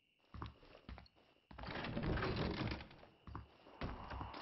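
Boots thud on wooden floorboards.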